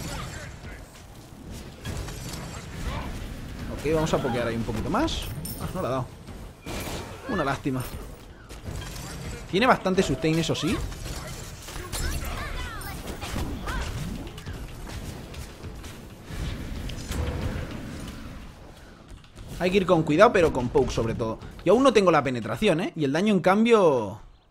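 Fiery blasts whoosh and burst.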